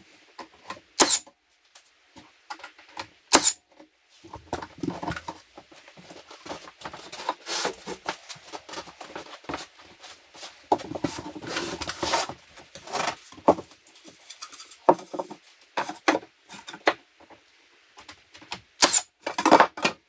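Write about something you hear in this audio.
A nail gun fires sharp bangs into wood.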